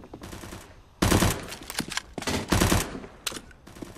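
A video game submachine gun fires rapid bursts.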